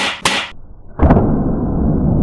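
An air rifle pellet smacks into dirt with a sharp thud.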